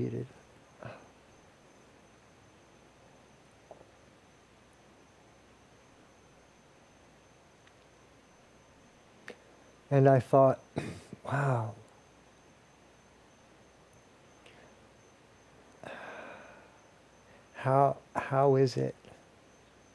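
A man speaks calmly and close by in short phrases, with long pauses between.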